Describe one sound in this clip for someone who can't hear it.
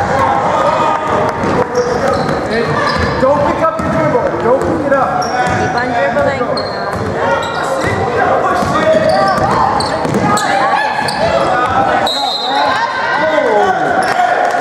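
Girls' voices shout and call out in a large echoing gym.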